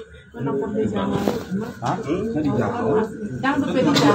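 Plastic wrapping crinkles under hands.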